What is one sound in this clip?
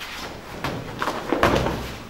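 A body thuds onto a floor mat.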